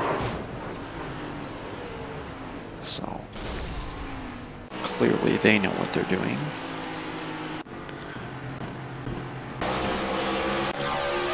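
Race car engines roar at high speed.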